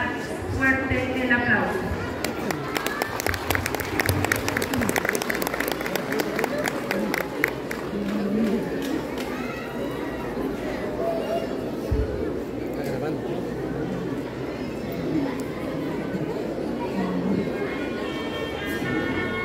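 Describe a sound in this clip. A large crowd chatters at a distance outdoors.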